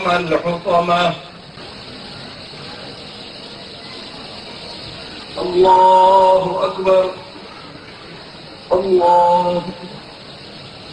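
A man chants out short calls through a loudspeaker, echoing in a large hall.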